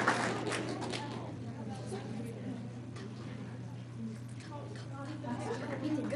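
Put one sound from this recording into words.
Children chatter quietly.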